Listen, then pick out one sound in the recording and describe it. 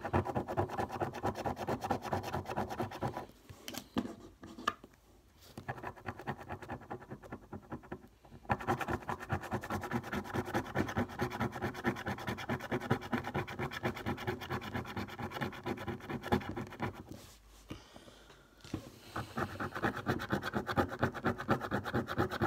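A coin scratches rapidly and steadily across a card, with short pauses.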